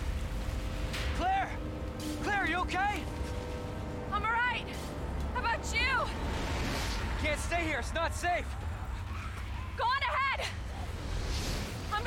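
A young man calls out urgently.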